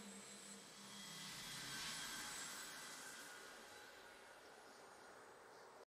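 A triumphant game fanfare swells and then slowly fades.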